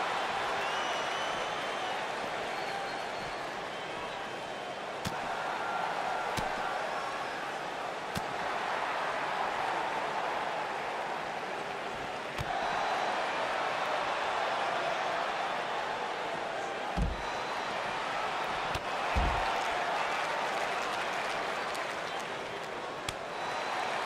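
A crowd cheers and roars steadily.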